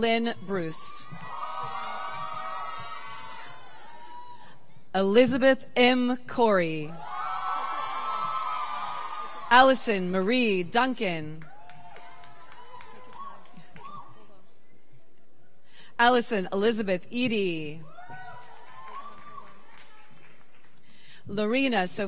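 An audience cheers and applauds.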